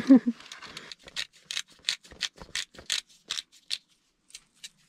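A knife taps and scrapes on a board.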